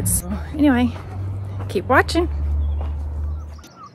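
A woman speaks cheerfully close by.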